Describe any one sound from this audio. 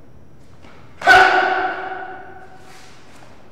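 A man lets out a sharp, loud shout that rings briefly in an echoing room.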